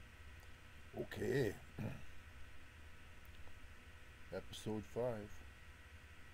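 A man speaks calmly into a microphone, close up.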